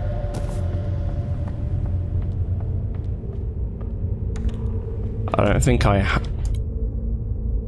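Footsteps crunch slowly on a gritty floor.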